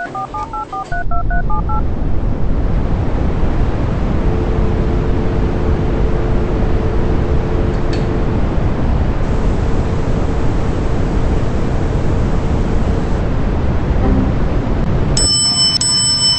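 An elevator hums and rumbles steadily as it moves.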